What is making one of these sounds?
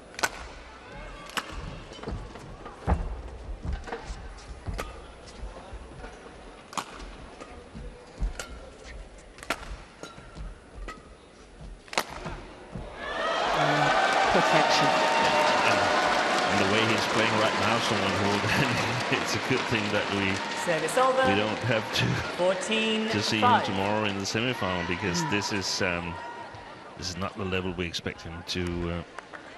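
Shoes squeak and thump on a court floor.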